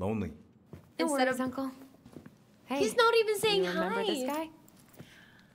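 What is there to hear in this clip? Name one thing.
A young woman speaks briefly in reply.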